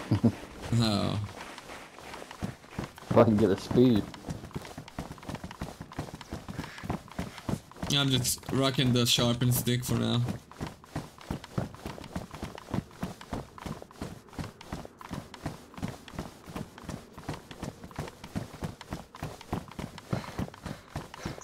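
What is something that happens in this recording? Footsteps run quickly and steadily over hard ground.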